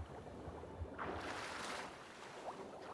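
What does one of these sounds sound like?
A swimmer bursts up out of the water with a splash.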